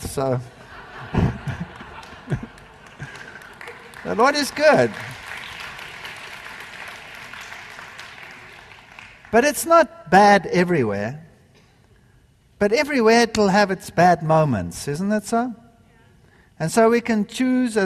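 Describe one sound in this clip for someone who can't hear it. An older man speaks with animation through a microphone in a large hall.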